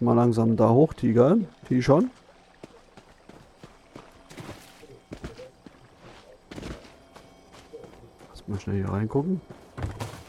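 Footsteps crunch softly on dirt and grass.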